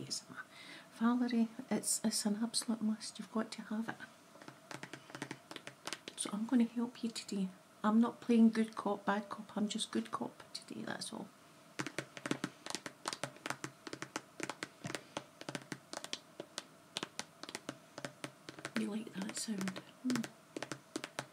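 A woman speaks softly and close to the microphone.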